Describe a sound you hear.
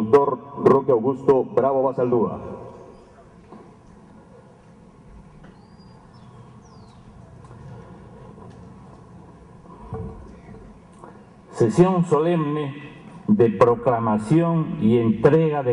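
A man speaks formally into a microphone, heard through a loudspeaker in a large hall.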